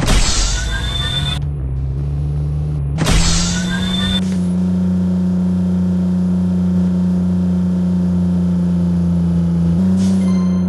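A racing car engine drones steadily at high speed.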